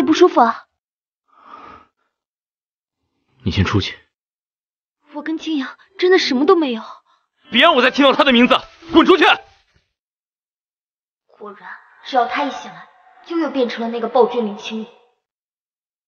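A young woman speaks in a worried, pleading tone.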